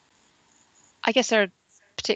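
A woman speaks briefly over an online call.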